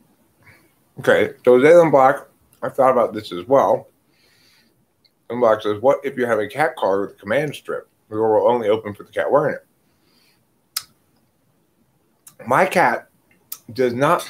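A middle-aged man speaks close to a microphone, pausing between phrases.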